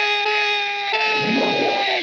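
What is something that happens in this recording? A man shouts fiercely.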